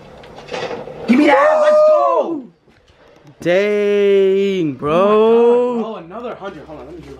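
A young man shouts loudly in excitement.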